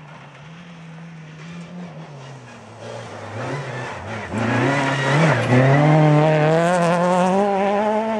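Gravel sprays and crunches under a rally car's tyres.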